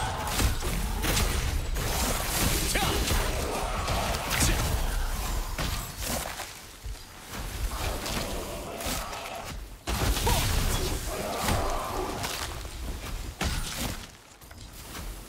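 Magic spells burst and whoosh in a fast fight.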